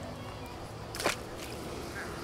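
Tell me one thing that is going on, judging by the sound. A fish splashes into water.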